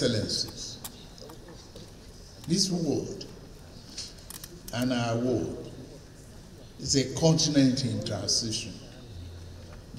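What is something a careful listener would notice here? An elderly man speaks slowly and deliberately into a microphone, with pauses.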